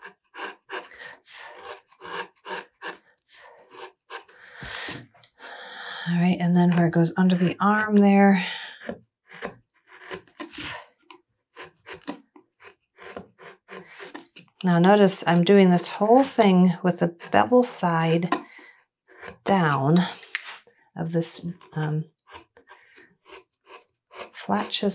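A chisel cuts into wood with short scraping clicks.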